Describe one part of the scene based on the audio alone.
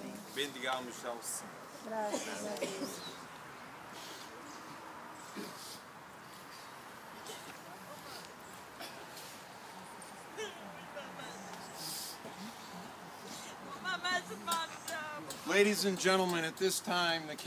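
A group of men and women sing together outdoors.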